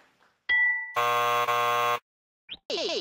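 A harsh buzzer sounds.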